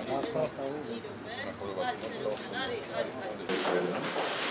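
Men talk to each other in a crowd.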